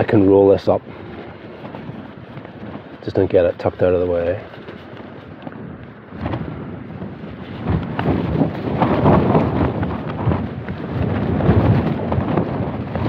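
Tent fabric and gear rustle close by as a man rummages through them.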